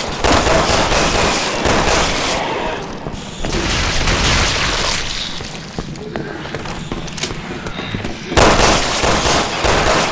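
A handgun fires several shots.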